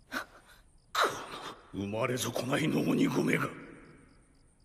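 A woman speaks in a shaky, pleading voice.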